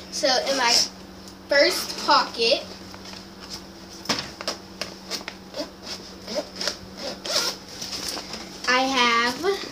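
A backpack zipper rasps open.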